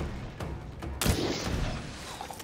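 An arrow is loosed from a bow with a sharp twang.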